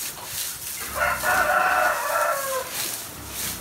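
A pig squeals loudly.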